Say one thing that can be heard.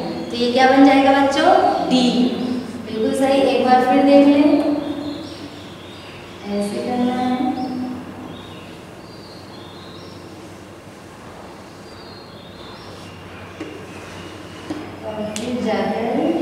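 A woman speaks calmly and clearly, as if teaching.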